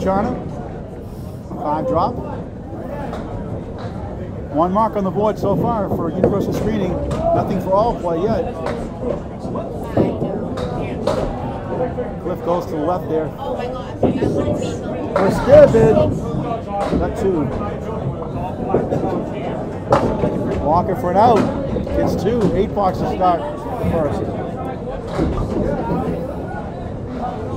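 Bowling pins clatter as a ball strikes them.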